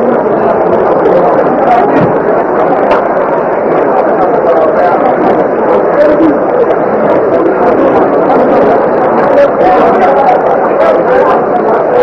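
A large crowd roars and chatters steadily in a stadium outdoors.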